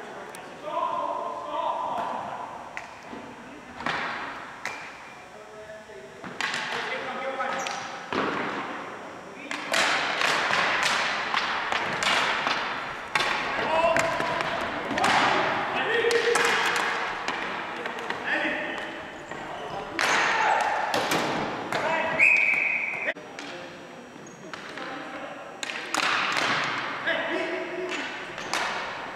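Players shout to each other across an echoing gym.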